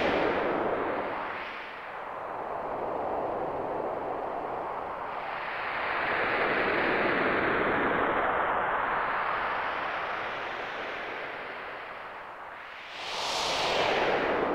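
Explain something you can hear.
A rushing current of water whooshes, swelling and fading in waves.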